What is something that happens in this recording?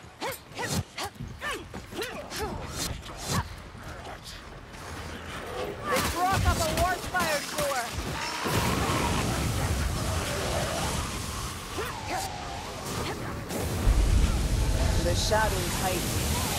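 Swords slash and clang against enemies in quick bursts.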